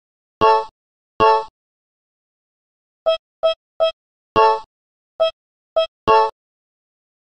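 Short electronic menu beeps chime one after another.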